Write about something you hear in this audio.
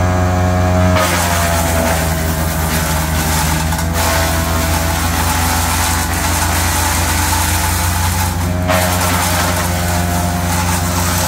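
A wood chipper grinds and shreds branches with a rushing roar.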